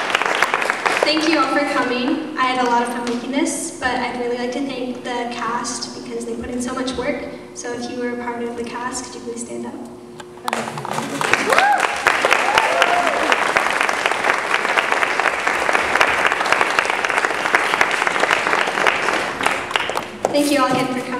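A young girl sings into a microphone through loudspeakers in a large echoing hall.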